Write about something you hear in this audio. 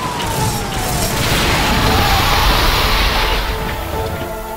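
A car bursts over a spike strip with a loud rushing crash.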